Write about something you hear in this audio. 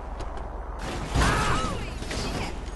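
A car crashes into another car with a loud bang.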